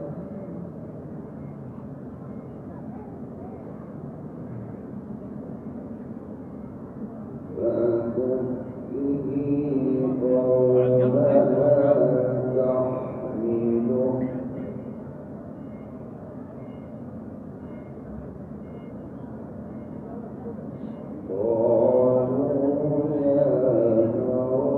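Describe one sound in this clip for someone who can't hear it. A crowd murmurs softly nearby.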